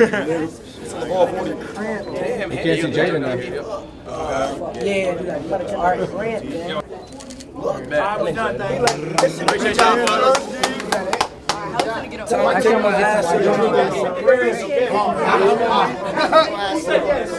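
A group of teenage boys chatters and cheers.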